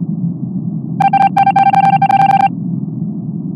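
Quick electronic beeps tick rapidly as text types out, then stop.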